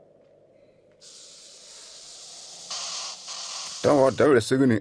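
A snake hisses loudly.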